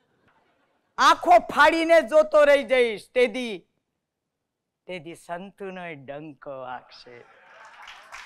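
An elderly woman speaks with animation into a microphone.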